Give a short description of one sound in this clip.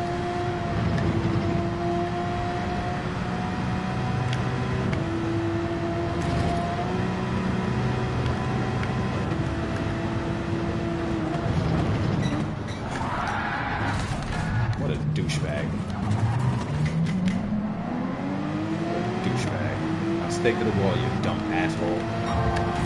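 A racing car engine roars at high revs and shifts through the gears.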